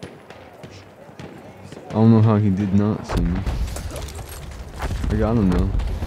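Pistol shots crack at close range.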